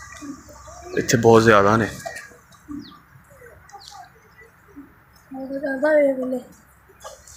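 A pheasant gives loud, harsh calls.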